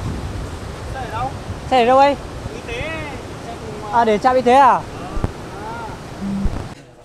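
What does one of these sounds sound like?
A man talks loudly outdoors, close by.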